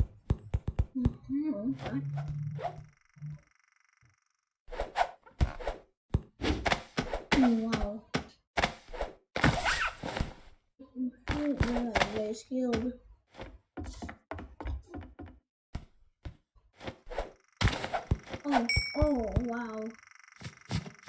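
A young boy talks with animation close to a microphone.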